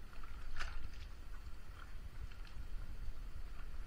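Wet cloth squelches and drips as it is lifted out of water.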